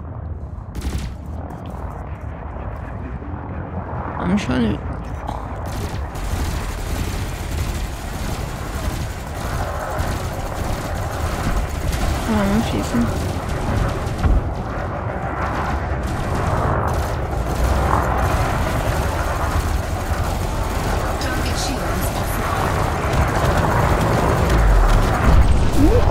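A spaceship engine rumbles steadily.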